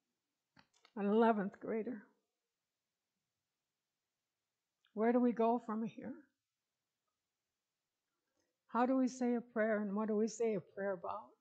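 An older woman speaks slowly and calmly, in short phrases with pauses, close to a microphone.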